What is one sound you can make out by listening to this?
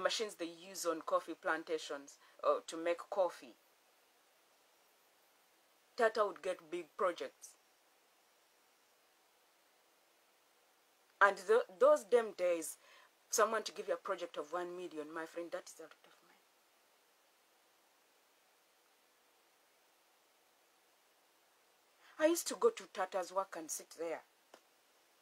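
A woman talks calmly and close by, in bursts with pauses.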